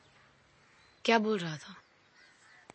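A woman speaks briefly and calmly.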